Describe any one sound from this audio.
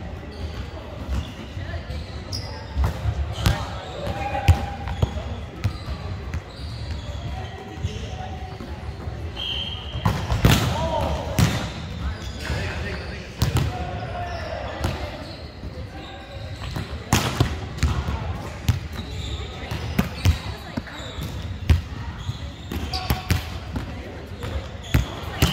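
A volleyball smacks off hands and arms, echoing in a large hall.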